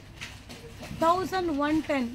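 A young woman speaks clearly and close by, with animation.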